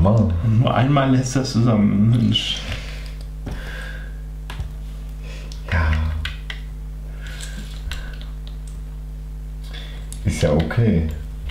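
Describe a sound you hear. Small plastic bricks click and rattle.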